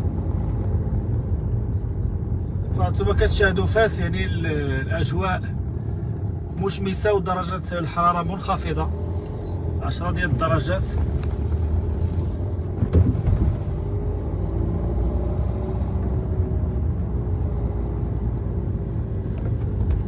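A car engine hums low and steady while tyres roll over the road.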